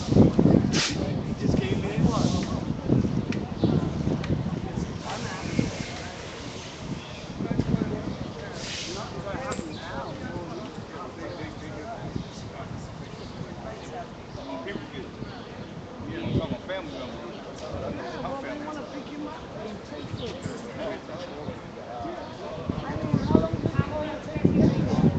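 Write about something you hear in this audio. A crowd of men and women talks outdoors.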